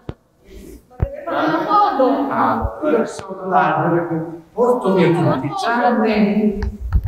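A man speaks with animation to the group.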